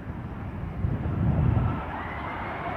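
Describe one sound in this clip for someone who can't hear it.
A jet crashes with a dull thud in the distance.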